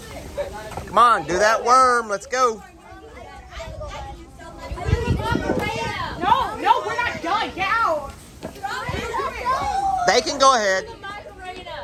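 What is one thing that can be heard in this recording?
A girl speaks excitedly up close.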